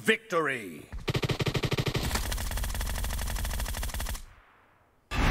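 A gun fires in a rapid rattling burst.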